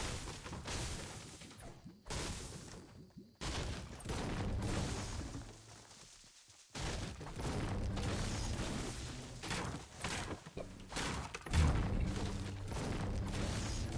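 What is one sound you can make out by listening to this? A pickaxe strikes wood and metal again and again.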